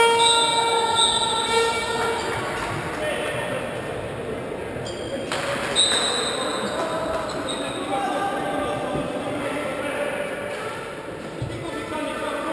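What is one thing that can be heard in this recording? A crowd chants and cheers in a large echoing hall.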